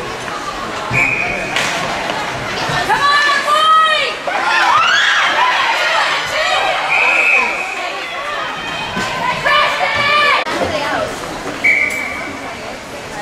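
A referee blows a sharp whistle several times.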